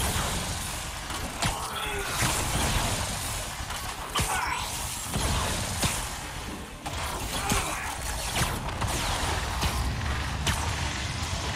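Air rushes past in steady whooshes while swinging.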